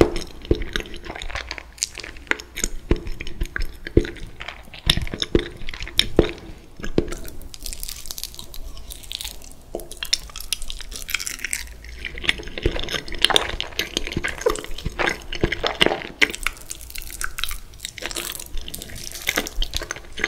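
A young man chews soft food wetly close to a microphone.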